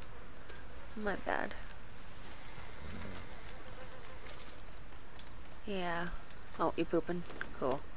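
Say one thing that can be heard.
A horse whinnies and snorts nearby.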